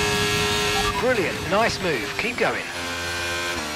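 A racing car engine blips sharply through quick downshifts.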